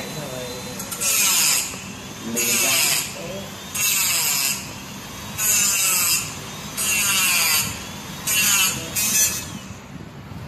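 A small handheld cutting tool grinds against metal in short, harsh bursts.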